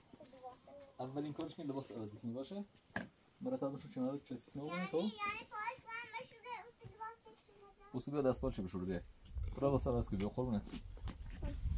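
A man talks calmly to a child nearby.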